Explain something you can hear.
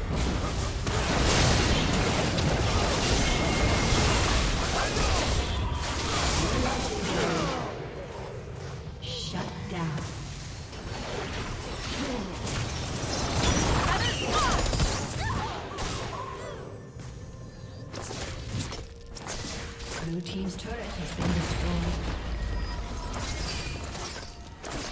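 Game spell blasts and battle clashes crackle and boom in quick bursts.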